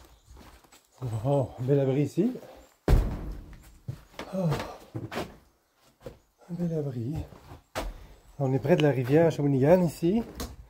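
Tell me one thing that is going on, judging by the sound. A middle-aged man talks calmly, close by.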